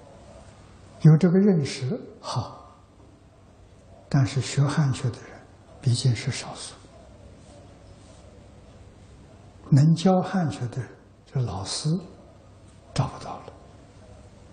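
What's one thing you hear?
An elderly man speaks calmly into a clip-on microphone, with pauses.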